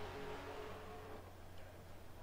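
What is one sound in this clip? A racing car engine drones steadily.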